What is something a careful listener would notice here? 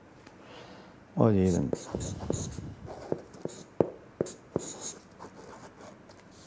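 A man scratches a pen across paper.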